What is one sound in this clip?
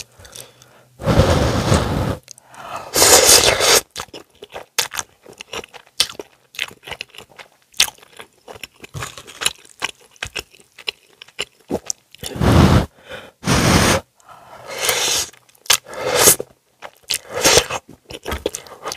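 A woman slurps noodles loudly, close to a microphone.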